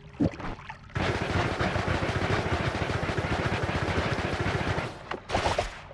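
Crackling zaps of laser beams fill the air.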